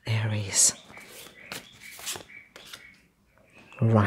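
A card is slapped down on a table.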